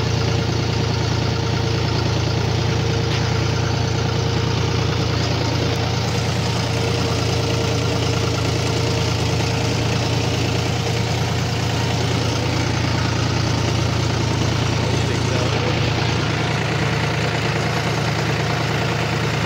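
A diesel tractor engine drones under load as it pulls across a field.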